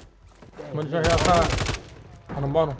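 A rifle fires a rapid burst close by.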